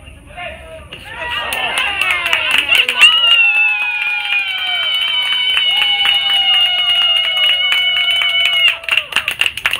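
Young boys chant and cheer loudly nearby.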